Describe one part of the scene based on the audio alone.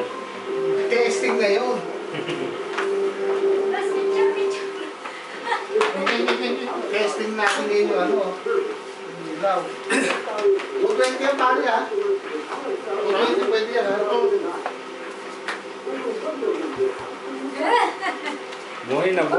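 Men talk and laugh nearby with animation.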